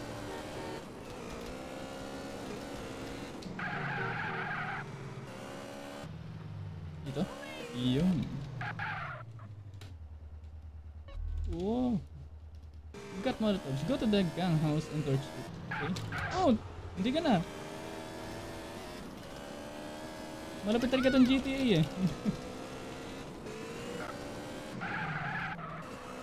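A motorcycle engine hums and revs.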